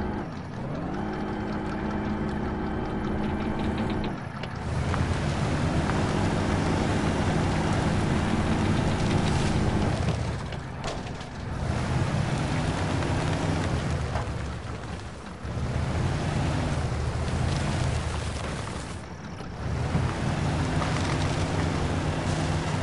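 A truck engine revs and labours, rising and falling in pitch.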